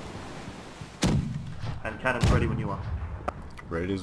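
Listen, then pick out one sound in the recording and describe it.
A cannon fires with a heavy boom.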